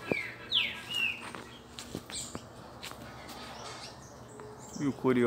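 Small songbirds chirp with short, sharp falling whistles.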